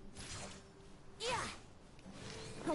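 A magical burst whooshes and booms.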